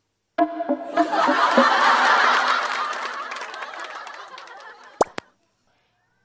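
A crowd of children cheers and chatters.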